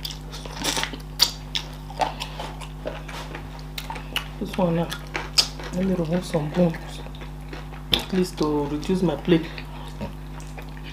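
People chew and smack their lips close to a microphone.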